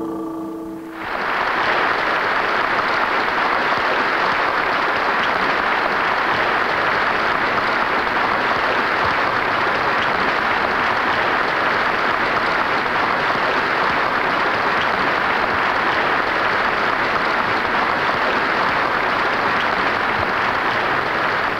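A large crowd applauds steadily.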